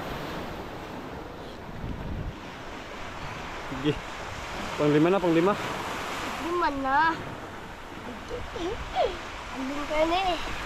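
Waves wash gently onto a shore outdoors.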